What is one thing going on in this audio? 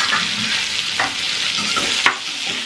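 Metal tongs scrape and clatter against a metal pan.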